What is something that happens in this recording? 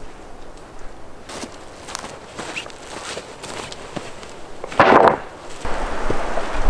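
Footsteps crunch on dry forest ground.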